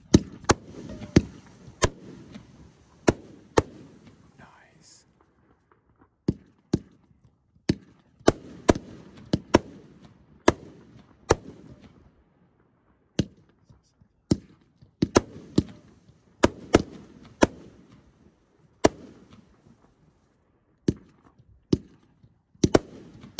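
Fireworks burst with loud bangs, echoing outdoors.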